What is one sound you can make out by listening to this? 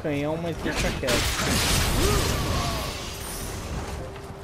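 A sword strikes an enemy with a burst of impact.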